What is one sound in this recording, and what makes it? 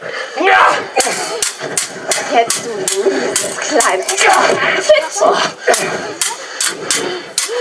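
Metal swords clash and clang repeatedly.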